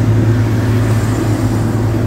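A motorcycle engine passes close by.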